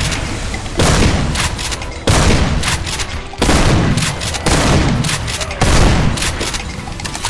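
A heavy gun fires in loud booming blasts.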